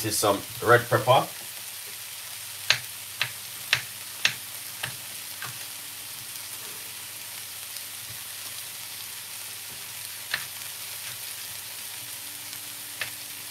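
Vegetables sizzle softly in a frying pan.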